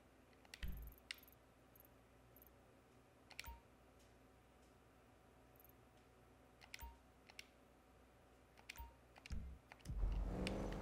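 Short menu blips click now and then.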